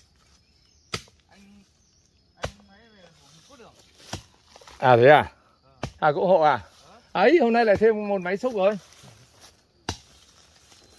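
A wooden stick knocks against the ground.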